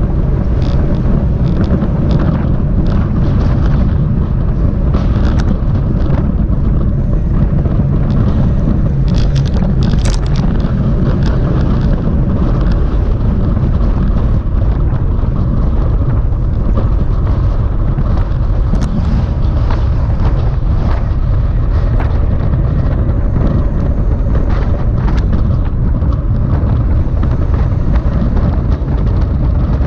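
Bicycle tyres hum on asphalt.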